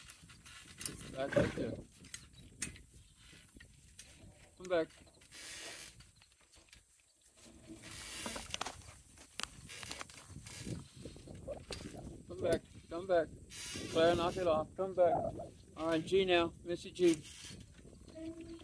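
An elderly man talks calmly, close to the microphone, outdoors.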